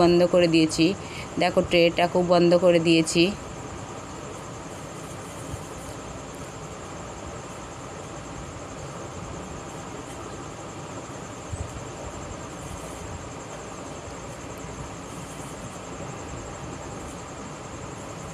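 Hands crinkle and fold aluminium foil.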